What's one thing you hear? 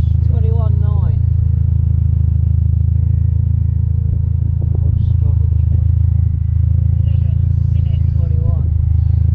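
A drone's motors hum steadily and loudly.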